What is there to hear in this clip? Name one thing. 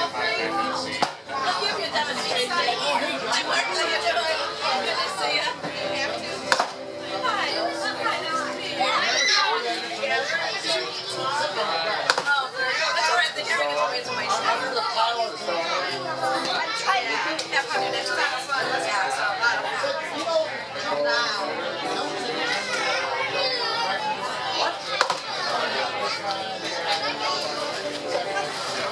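A crowd of adults and children chatter nearby.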